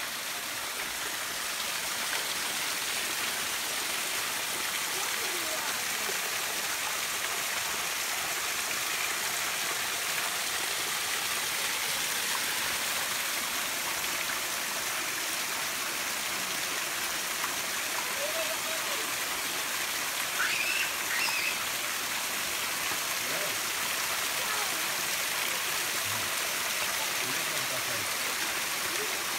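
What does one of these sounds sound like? A waterfall splashes steadily onto rocks outdoors.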